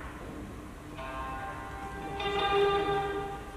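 A woman sings.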